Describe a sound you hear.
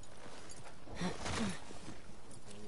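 A thud sounds as someone jumps down to the ground.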